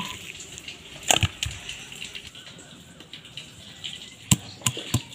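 A stone pestle knocks against a stone slab.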